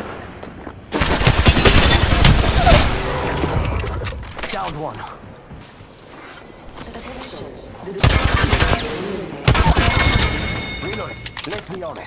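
Automatic gunfire rattles in loud, rapid bursts.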